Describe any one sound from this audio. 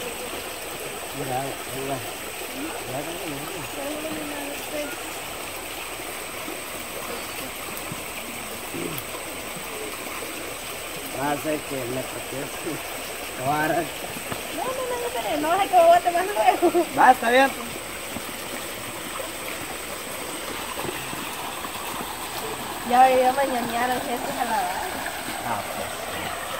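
Children talk and call out nearby.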